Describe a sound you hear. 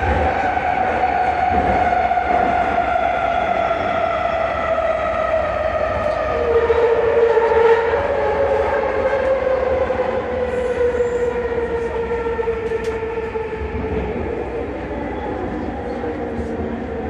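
A train's electric motor whines, falling steadily in pitch as the train slows.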